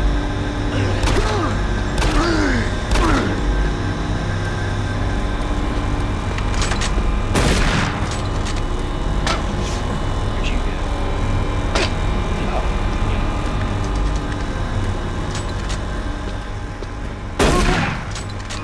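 Pistol shots ring out with sharp bangs.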